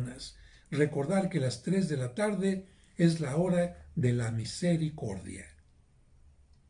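An elderly man speaks calmly and expressively into a close microphone.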